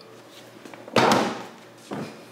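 A refrigerator door thumps shut.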